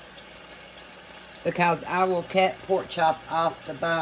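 A spoon stirs thick sauce in a metal pan.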